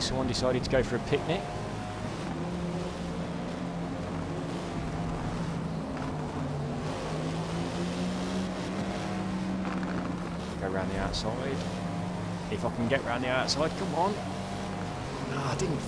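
A car engine hums steadily at high revs.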